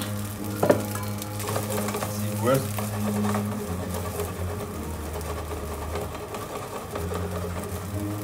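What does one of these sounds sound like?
A spatula stirs and scrapes rice in a pan.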